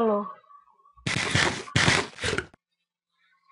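A game character munches food with loud crunching bites.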